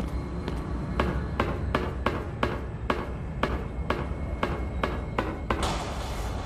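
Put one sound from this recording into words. Footsteps clank steadily on metal stairs.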